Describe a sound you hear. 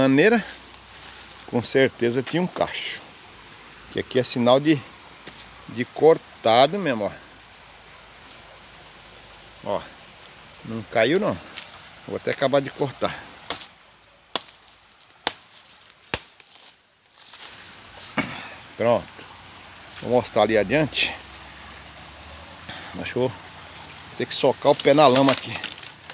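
Shallow stream water trickles gently over stones.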